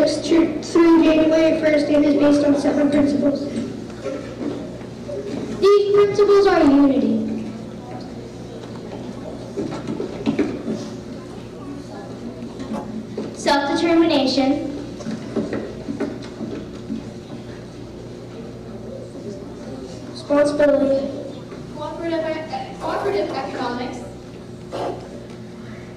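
A children's choir sings in bursts of short phrases in a large echoing hall.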